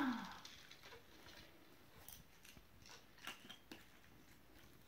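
Small plastic toys click and clatter.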